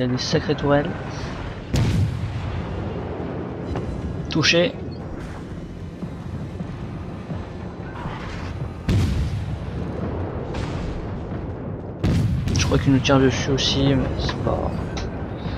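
Shells explode with loud rumbling bangs.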